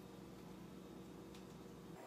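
A small jar of seasoning is shaken.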